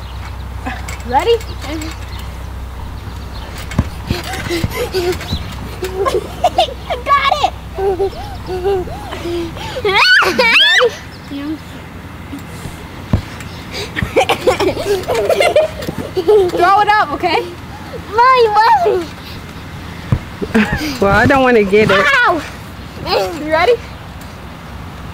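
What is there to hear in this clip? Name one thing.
Young girls talk and squeal excitedly nearby.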